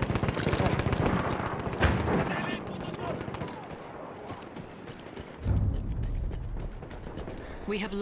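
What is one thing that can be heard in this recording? Footsteps crunch quickly over loose gravel and dirt.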